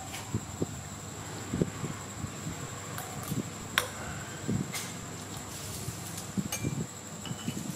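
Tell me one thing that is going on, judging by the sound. A metal spoon clinks against a plate.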